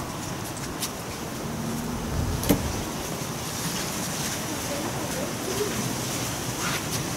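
Women talk quietly a short way off.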